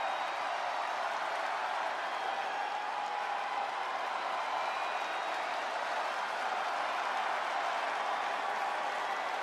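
A large crowd roars steadily in a big arena.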